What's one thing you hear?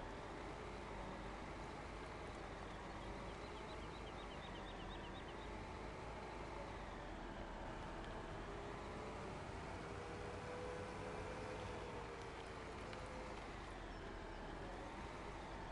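A mixer wagon whirs as its drum turns.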